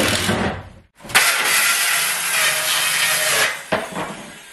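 A circular saw whirs loudly as it cuts through a board.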